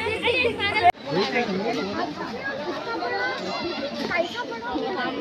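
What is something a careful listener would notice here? A crowd of men and women chatter nearby, outdoors.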